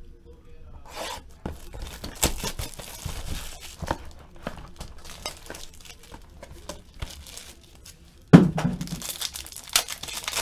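Plastic wrapping crinkles and rustles as hands handle a box.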